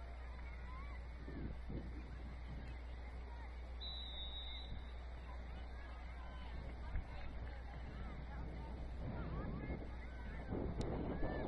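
Young players shout and call to each other across an open outdoor field.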